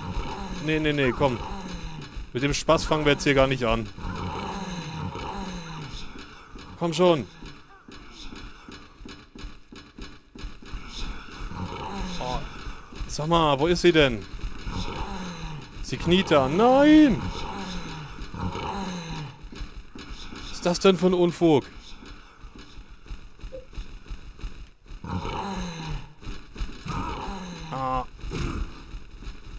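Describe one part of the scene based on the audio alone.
Creatures let out wailing, warbling shrieks.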